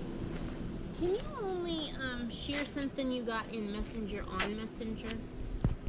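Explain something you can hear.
Several women talk and laugh close by outdoors.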